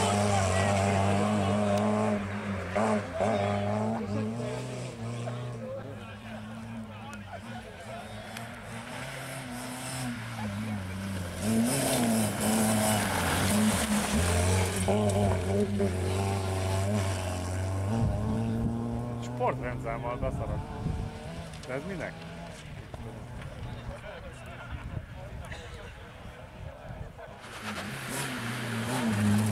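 A rally car engine revs hard and roars past, shifting gears.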